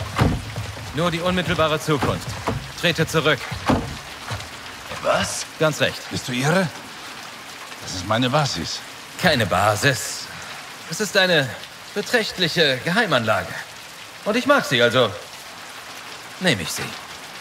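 Another man answers in a low, calm voice nearby.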